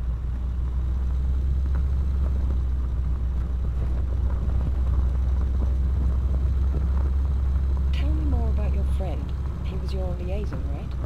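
A heavy vehicle's engine rumbles steadily.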